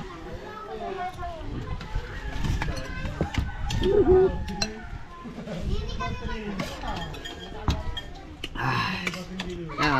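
Spoons and forks clink against plates.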